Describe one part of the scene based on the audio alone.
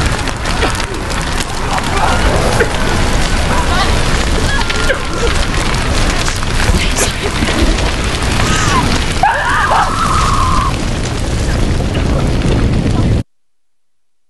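A large fire roars and crackles close by.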